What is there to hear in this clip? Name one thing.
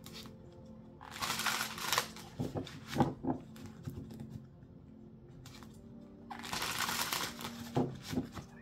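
Cards rustle and shuffle close by.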